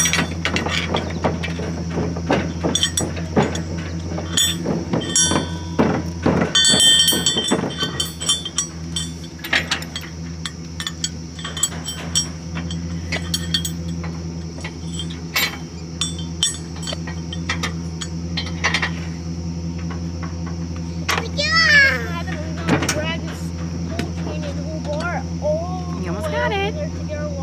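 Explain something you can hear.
Metal parts clink and clatter against each other close by.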